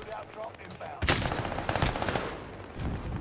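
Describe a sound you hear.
Rapid gunshots crack in a video game.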